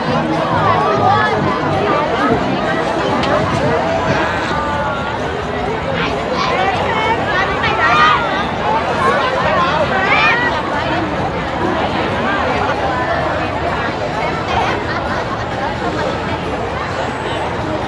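A large crowd of people chatters all around outdoors.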